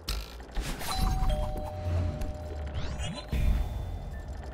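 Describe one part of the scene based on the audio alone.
A bright electronic chime rings out.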